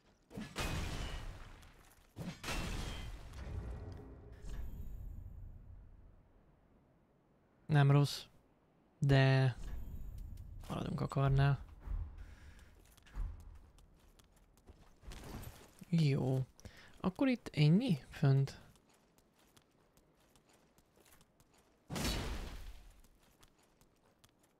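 Heavy sword swings whoosh through the air.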